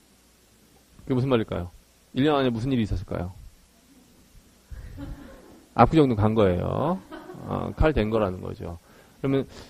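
A man speaks calmly into a microphone, close by.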